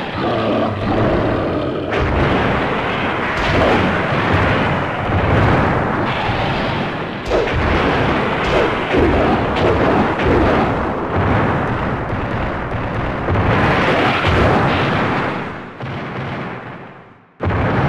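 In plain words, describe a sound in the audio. Monster roars and screeches blare from a fighting game.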